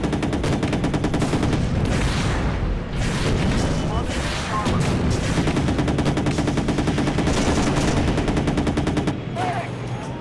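Shells explode with booming blasts.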